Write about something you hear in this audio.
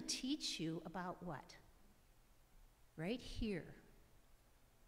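An elderly woman speaks calmly into a microphone in a large echoing hall.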